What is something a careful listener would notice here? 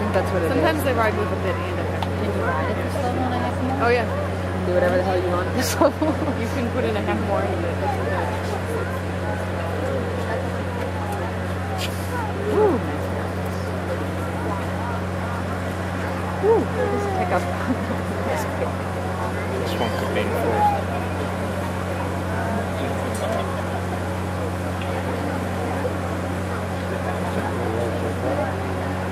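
A crowd murmurs and chatters in a large arena.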